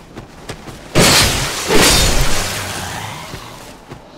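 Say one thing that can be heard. A sword swings and strikes with a loud crash.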